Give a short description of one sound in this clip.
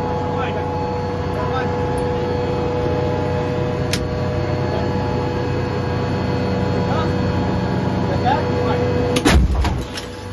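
An engine hums steadily inside an armoured howitzer's crew compartment.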